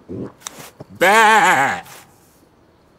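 A sheep bleats loudly.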